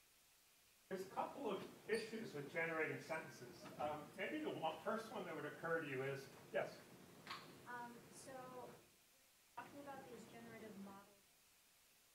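An older man speaks calmly, lecturing, heard through a microphone.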